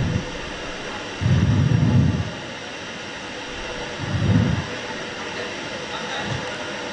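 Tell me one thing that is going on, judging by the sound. A man speaks loudly into a microphone over a loudspeaker, in a large echoing space.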